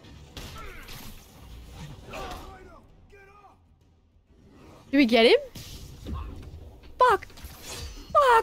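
A young woman speaks into a close microphone with excitement, with sudden loud exclamations.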